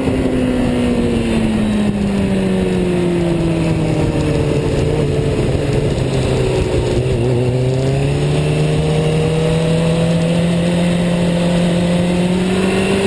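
A motorcycle engine roars close by, its pitch dropping and then rising again.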